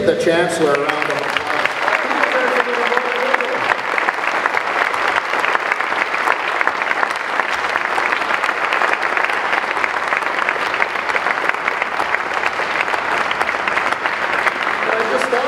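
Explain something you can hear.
A crowd applauds steadily.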